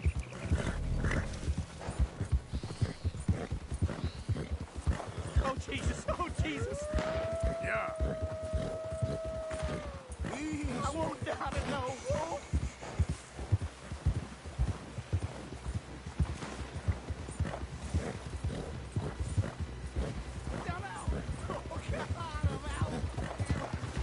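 Horse hooves thud steadily through snow.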